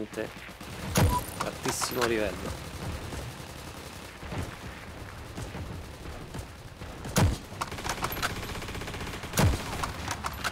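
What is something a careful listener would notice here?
Rifle shots crack sharply a few times.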